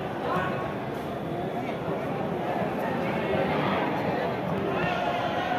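A stadium crowd murmurs and chatters nearby.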